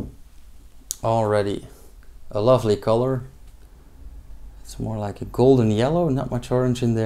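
A man talks calmly and close to a microphone.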